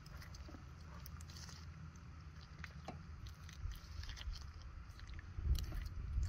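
A knife cuts wetly through flesh.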